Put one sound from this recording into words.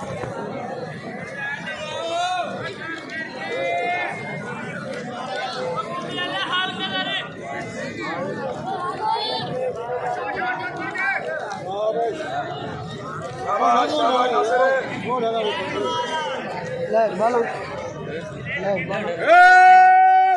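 Men in a crowd nearby shout and talk with excitement.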